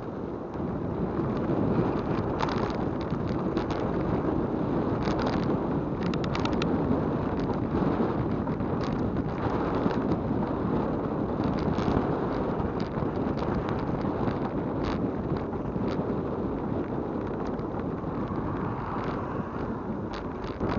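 Bicycle tyres hum and rattle on rough pavement.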